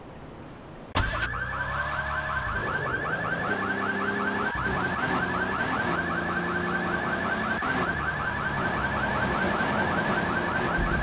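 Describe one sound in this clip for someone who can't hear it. A car engine revs and drives off.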